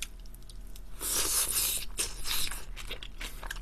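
A young man slurps noodles loudly.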